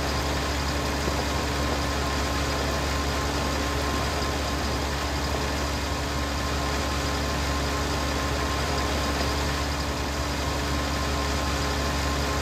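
A towed machine rattles and whirs behind a tractor.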